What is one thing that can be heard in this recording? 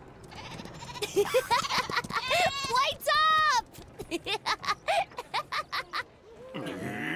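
A young boy calls out with animation.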